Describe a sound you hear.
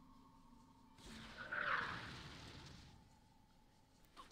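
A rocket launcher fires with a rushing whoosh.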